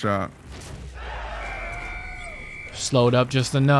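An explosion bursts with a ringing chime.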